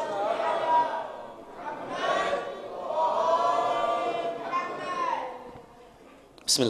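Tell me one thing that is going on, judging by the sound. A man chants in a drawn-out, singing voice through a microphone.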